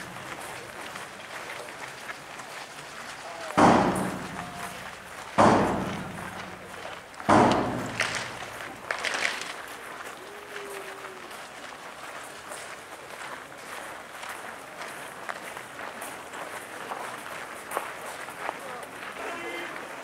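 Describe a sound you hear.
A crowd of men and women murmurs at a distance outdoors.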